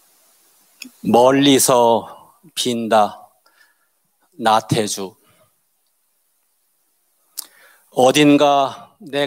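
An elderly man speaks calmly into a microphone, heard through loudspeakers in a large hall.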